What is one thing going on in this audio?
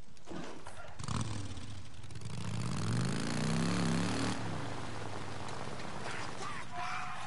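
A motorcycle engine runs and revs.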